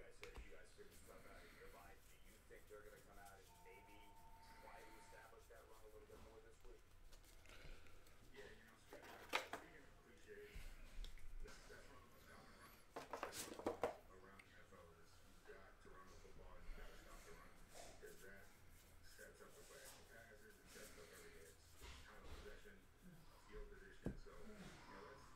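Trading cards flick and shuffle in hands.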